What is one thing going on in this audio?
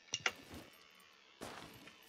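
Something scrapes and bumps as a figure climbs through a window.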